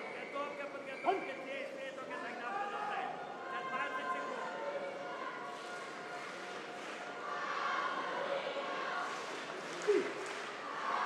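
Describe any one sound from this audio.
A referee shouts a sharp call.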